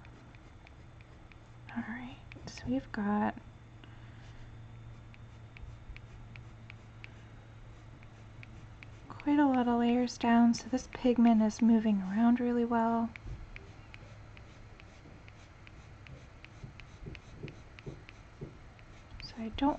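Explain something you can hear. A pencil scratches softly on paper in quick strokes.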